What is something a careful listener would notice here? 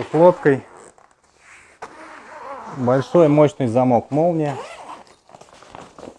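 A zipper is pulled open on a bag.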